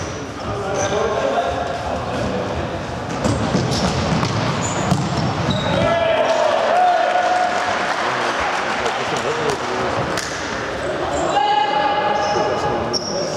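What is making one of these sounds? Young boys shout to each other across an echoing hall.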